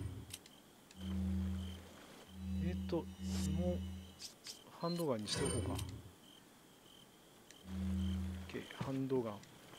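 Short electronic menu tones hum and blip.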